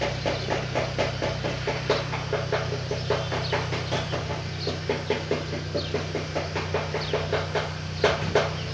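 A blade scrapes against a metal surface in quick, rhythmic strokes.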